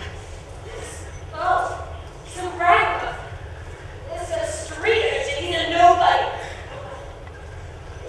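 A young woman speaks with an annoyed tone.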